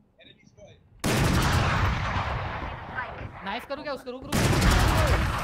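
An automatic rifle fires bursts of gunfire.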